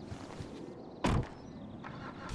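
A car door slams shut with a thud.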